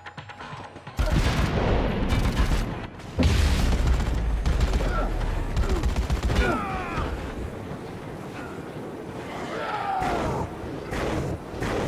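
An axe hacks into flesh with heavy, wet thuds.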